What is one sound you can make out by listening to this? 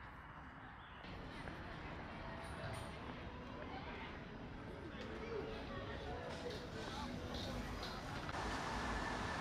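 A crowd of people chatters at outdoor tables.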